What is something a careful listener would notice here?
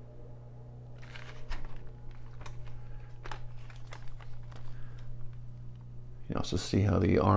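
Plastic parts click and rattle as they are handled.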